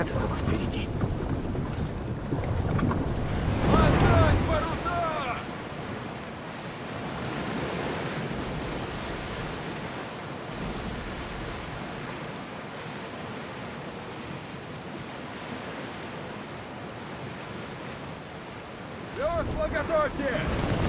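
Waves splash and rush against a wooden ship's hull.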